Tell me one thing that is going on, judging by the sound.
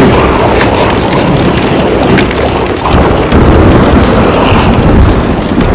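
A large crowd of creatures runs and rushes across open ground.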